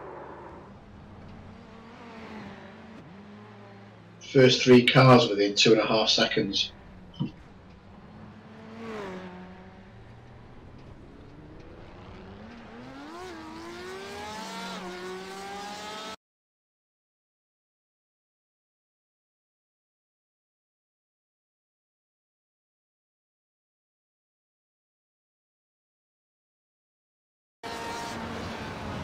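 A race car engine roars and revs up and down.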